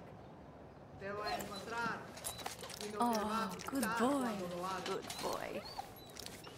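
A dog whines and yelps excitedly up close.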